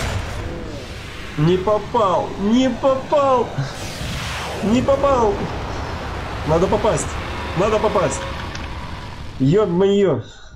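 A rocket engine roars as a rocket lifts off.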